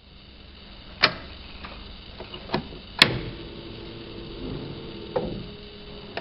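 A switch clicks sharply nearby.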